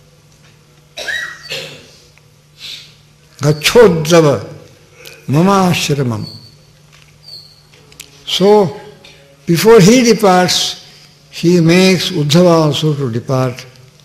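An elderly man speaks slowly and expressively into a microphone, with pauses between phrases.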